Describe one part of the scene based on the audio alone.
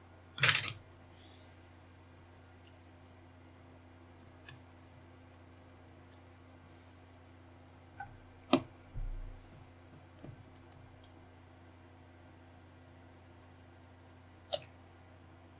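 Small plastic model parts click and knock against a tabletop.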